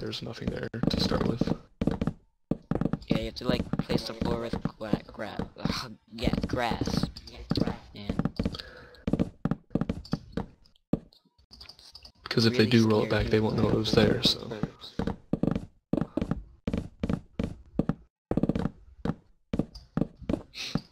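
Wooden blocks break apart with quick, repeated crunching knocks.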